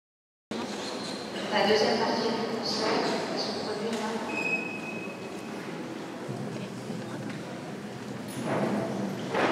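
A wind band plays a baroque overture in a large echoing hall.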